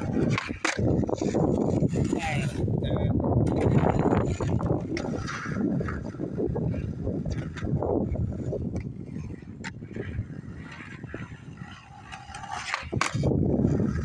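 A skateboard clacks sharply against the pavement as it lands.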